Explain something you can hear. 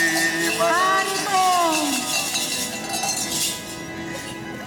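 A group of men and women sing together outdoors.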